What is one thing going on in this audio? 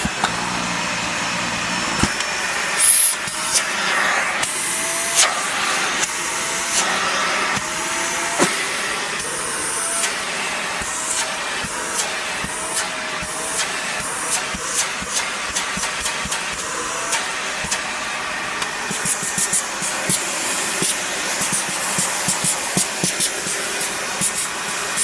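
An upright vacuum cleaner runs on a carpet mat.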